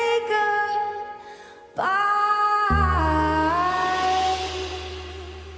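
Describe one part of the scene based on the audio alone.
A woman sings into a microphone with feeling.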